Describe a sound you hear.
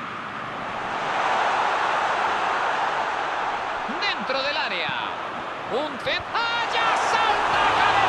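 A large crowd in a stadium roars louder.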